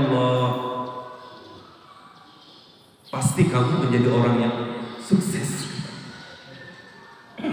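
A man speaks with animation into a microphone in a reverberant hall.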